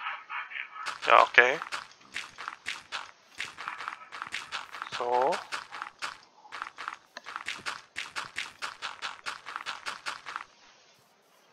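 Footsteps crunch steadily on grass and dirt.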